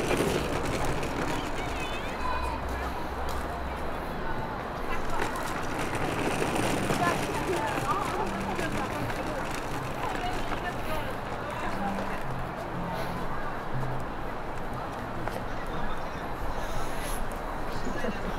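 Footsteps walk along a paved path outdoors.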